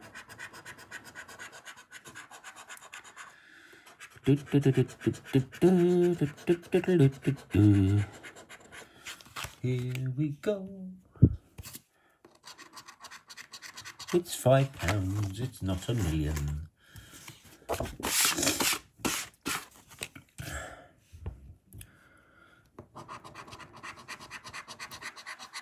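A coin scratches across a scratch card.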